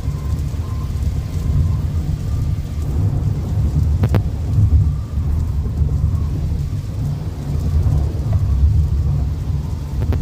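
Windscreen wipers swish across the glass.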